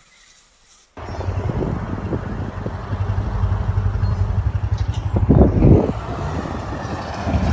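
A dirt bike engine roars and revs close by.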